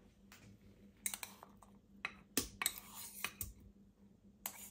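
Soft butter plops into a glass bowl.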